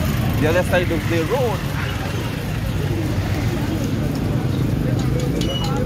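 Men and women talk loudly nearby outdoors.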